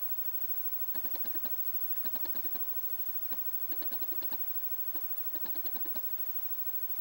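A television menu gives rapid bursts of short electronic beeps.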